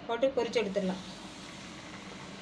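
Hot oil sizzles in a pan.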